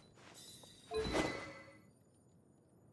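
A blade whooshes through the air with a shimmering ring.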